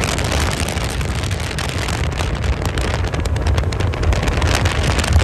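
A speedboat engine roars past at high speed.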